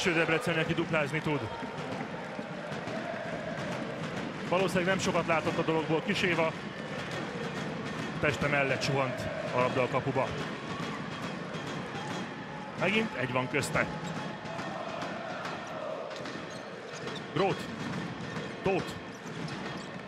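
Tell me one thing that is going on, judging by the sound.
A large crowd murmurs and cheers in an echoing hall.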